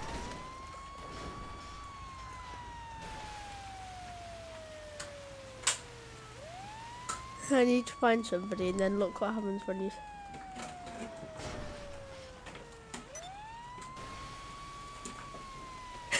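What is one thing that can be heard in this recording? A fire truck engine hums as it drives.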